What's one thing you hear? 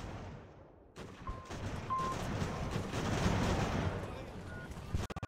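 Distant musket fire and battle noise crackle steadily.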